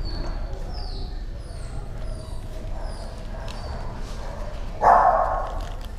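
A dog sniffs along the floor.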